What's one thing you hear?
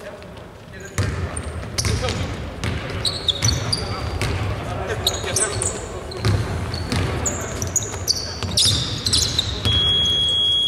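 A basketball bounces on a hardwood court in a large echoing arena.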